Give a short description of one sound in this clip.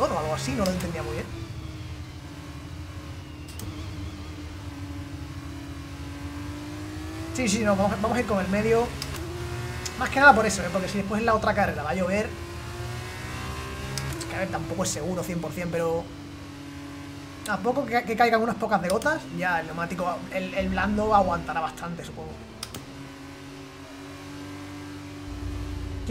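A racing car engine hums steadily, shifting pitch as it speeds up and slows down.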